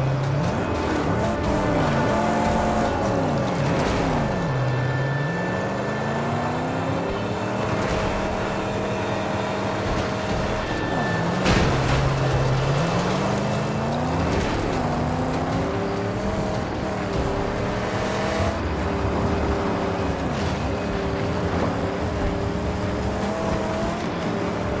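Tyres rumble and crunch over rough, loose ground.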